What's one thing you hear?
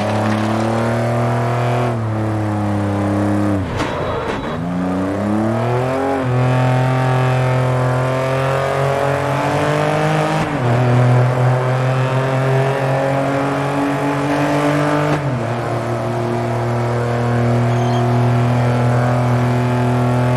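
A sports car engine roars steadily, dropping in pitch at each gear shift and then revving up again.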